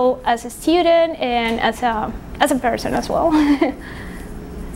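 A young woman speaks calmly and warmly into a close microphone.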